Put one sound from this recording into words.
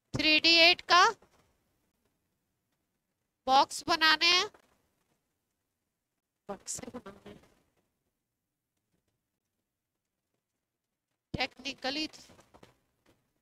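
A woman speaks calmly through a clip-on microphone in short phrases, with long pauses.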